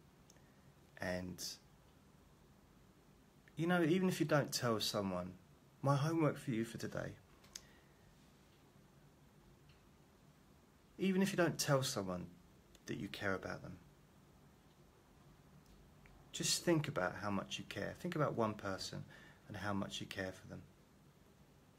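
A middle-aged man talks calmly and close to the microphone, with pauses.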